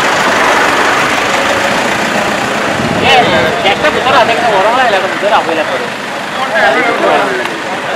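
A car engine hums as a car drives slowly along a street.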